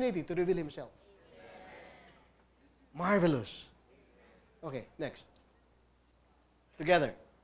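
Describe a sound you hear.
A man speaks calmly in short phrases nearby, with pauses between them.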